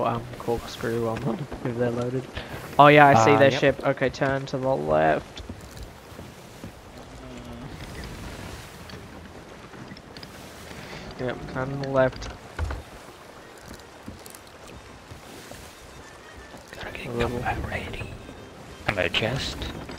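Ocean waves wash steadily against a wooden ship.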